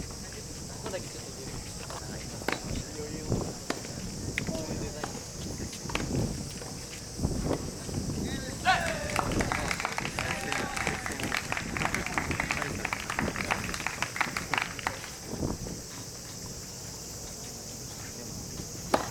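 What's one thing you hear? Tennis balls pop off rackets in the distance.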